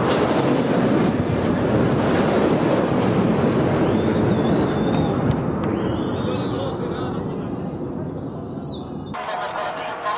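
A crowd of men shouts excitedly outdoors.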